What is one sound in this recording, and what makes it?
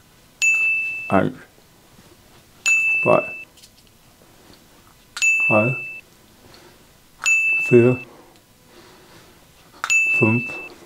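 A young man says single short words, one after another.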